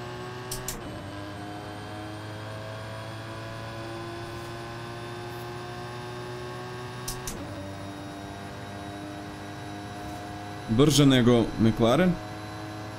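A racing game's car engine roars at full throttle.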